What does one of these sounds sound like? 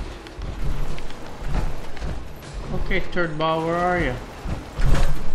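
Heavy metal footsteps thud and clank on a hard floor.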